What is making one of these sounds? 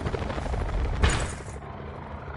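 A heavy thud lands on the ground.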